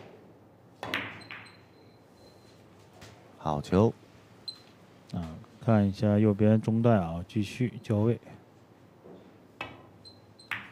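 A snooker cue clicks sharply against a ball.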